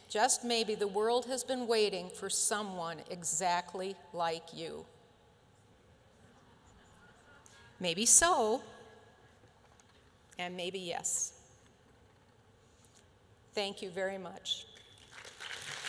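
An elderly woman speaks with animation through a microphone.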